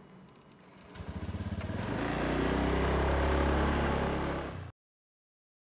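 A scooter engine starts and revs up.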